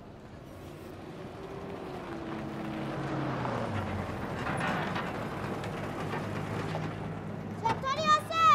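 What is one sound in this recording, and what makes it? A small truck engine idles and rumbles as the truck pulls up.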